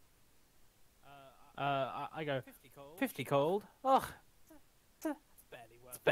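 A young man talks animatedly, close to a microphone.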